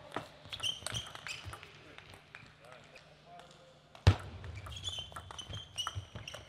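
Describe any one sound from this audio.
A table tennis ball clicks sharply off paddles and the table in a quick rally.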